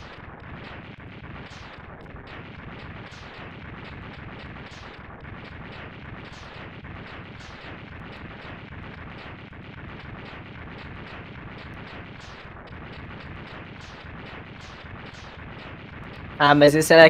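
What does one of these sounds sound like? Rapid electronic blasts crackle over and over in a game.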